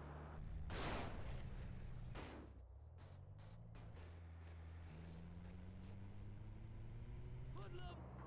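Tyres crunch over dry ground.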